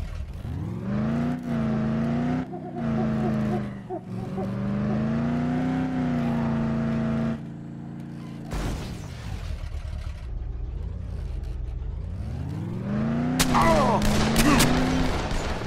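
Tyres rumble over a rough dirt track.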